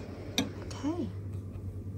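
Glass jars clink softly against metal tongs.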